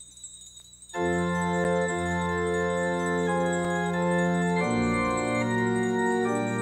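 An organ plays sustained chords.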